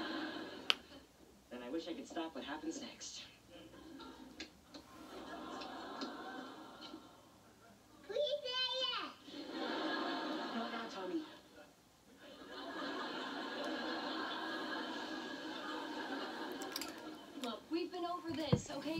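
A television plays a show in the room.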